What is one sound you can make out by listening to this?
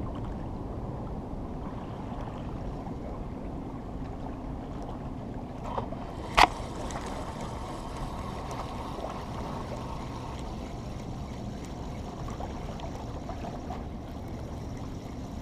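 Water laps gently against rocks close by.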